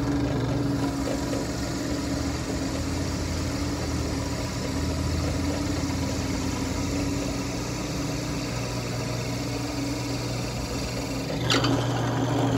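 A drill press bit bores into wood.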